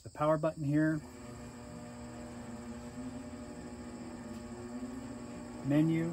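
A grill's fan hums steadily.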